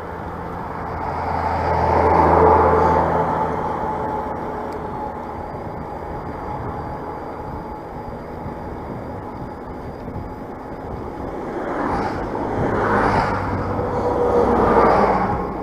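A heavy truck rumbles loudly past close by.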